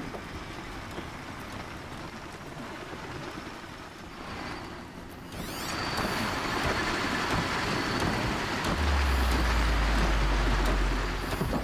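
Wind blows steadily, growing stronger.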